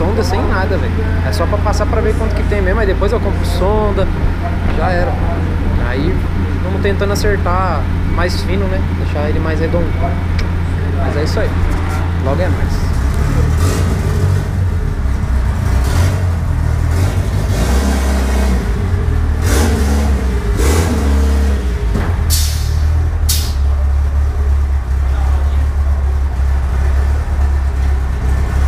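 A car engine rumbles loudly and revs up and down.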